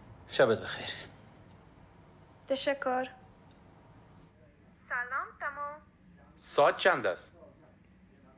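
A young woman speaks softly and warmly close by.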